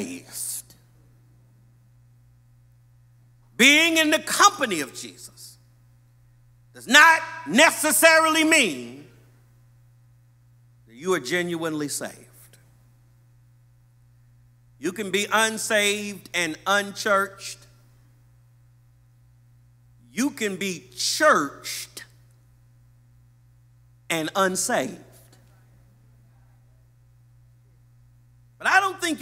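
A man preaches with animation into a microphone in a large echoing hall, pausing between phrases.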